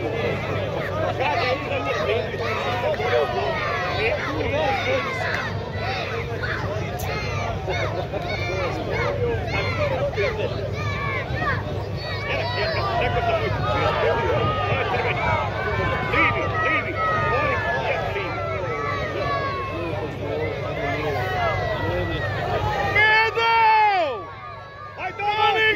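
A large outdoor crowd chatters and shouts in the distance.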